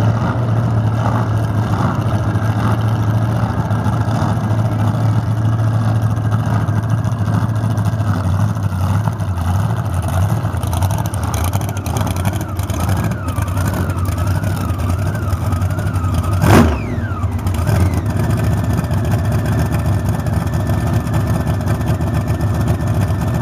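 A drag racing engine idles with a loud, deep, lumpy rumble close by.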